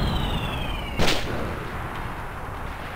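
A heavy thud lands on the ground.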